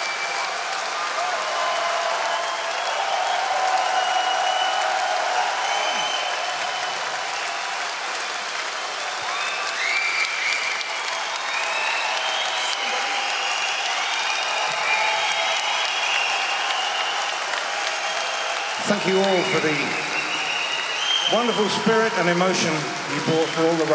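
People in a crowd whistle loudly.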